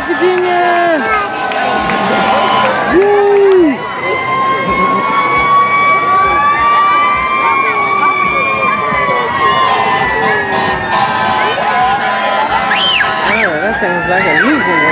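A large crowd of people chatters and cheers outdoors.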